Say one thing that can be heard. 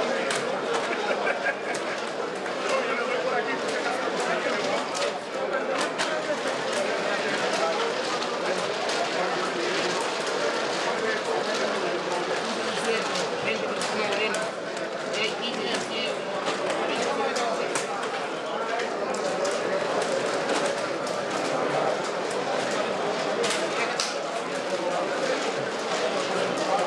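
Dominoes click and clack on a wooden table.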